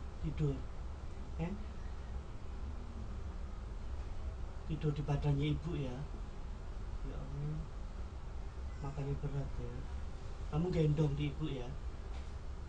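A man speaks in a low voice nearby, in short bursts.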